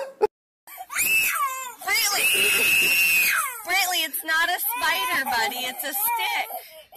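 A toddler cries and wails loudly close by.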